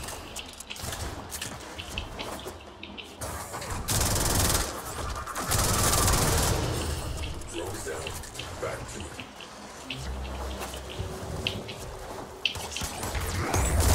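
Swords whoosh and clang in quick swings.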